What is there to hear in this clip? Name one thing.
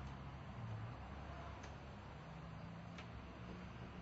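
A glass door swings shut with a soft thud.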